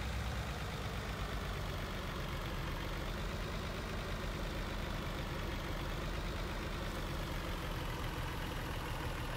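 A truck engine rumbles steadily as the truck drives slowly.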